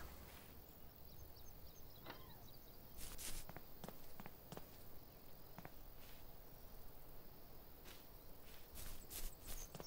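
Footsteps shuffle on grass and pavement.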